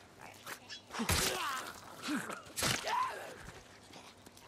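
Blows and grunts of a fight sound from a game.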